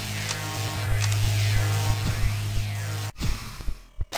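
A heavy energy weapon fires with a loud humming blast.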